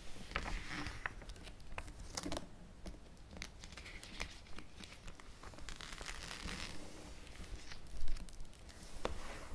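Plastic album pages crinkle and rustle as they are turned.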